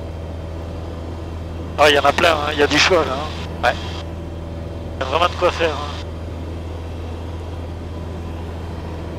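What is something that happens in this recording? A light aircraft's engine drones steadily from inside the cockpit.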